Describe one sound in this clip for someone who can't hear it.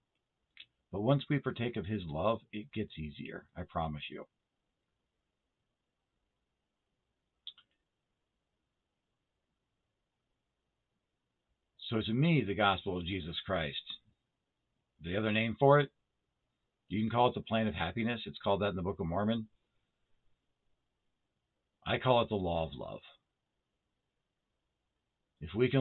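A middle-aged man speaks calmly and slowly in pauses, close to a microphone.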